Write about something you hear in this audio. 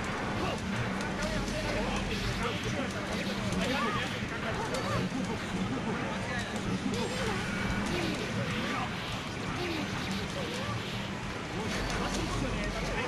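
Fast game music plays throughout.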